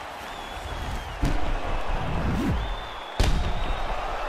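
Heavy punches land with sharp thuds.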